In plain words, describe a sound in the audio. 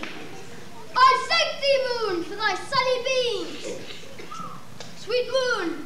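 A young boy speaks loudly and expressively on stage.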